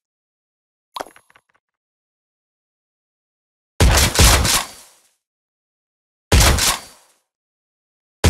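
Coins jingle in quick bursts.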